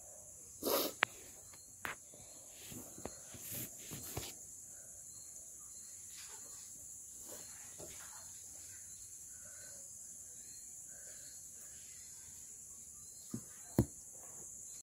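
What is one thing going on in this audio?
Metal dishes and spoons clink now and then.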